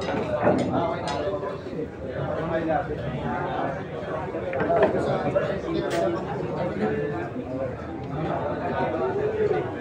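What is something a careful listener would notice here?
A crowd of men and women chatters nearby in an echoing room.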